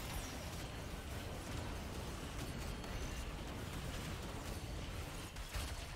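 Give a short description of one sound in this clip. Game spells crackle and burst in a fast battle.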